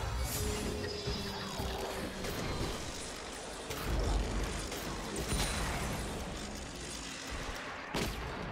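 Game spell effects whoosh and crackle in quick bursts.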